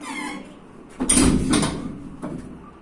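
A heavy barbell thuds down onto the floor with a metallic clang.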